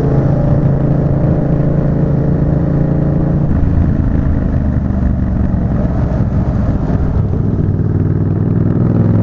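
A motorcycle engine hums steadily, shifting pitch around midway.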